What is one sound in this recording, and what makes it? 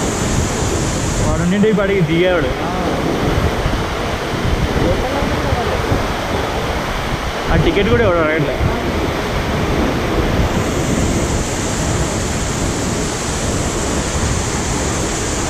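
A river rushes over rocks outdoors.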